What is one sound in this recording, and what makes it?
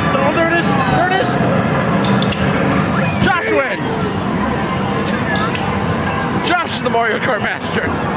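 Arcade racing game music and effects play loudly through speakers.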